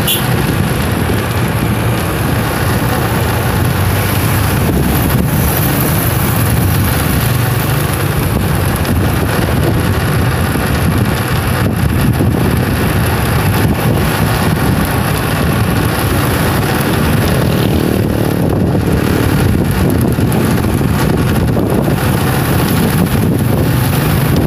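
Cars and small motorcycles drive past on a busy road.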